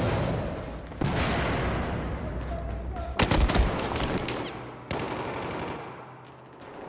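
Gunfire bursts loudly and echoes.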